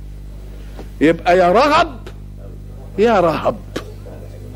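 An elderly man chants melodically into a microphone.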